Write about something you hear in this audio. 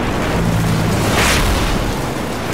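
A loud blast bursts out nearby.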